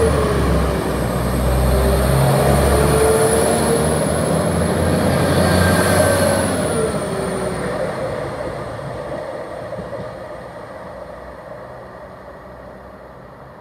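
A train pulls away with a loud rumbling engine and a high whine, then fades into the distance.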